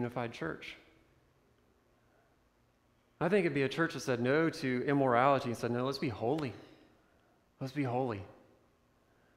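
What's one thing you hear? A young man speaks calmly into a microphone in a room with a slight echo.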